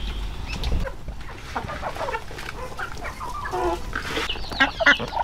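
Chickens cluck and chirp while pecking at feed.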